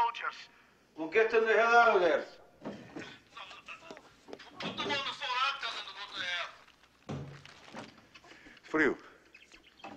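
A man shouts angrily into a telephone.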